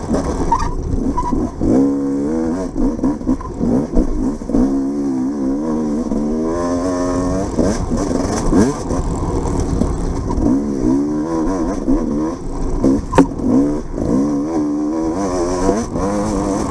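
Tyres rumble over a bumpy dirt trail.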